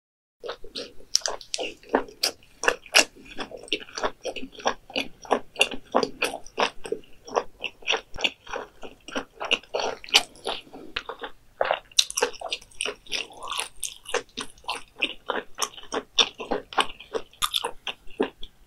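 A young woman chews food wetly and loudly close to a microphone.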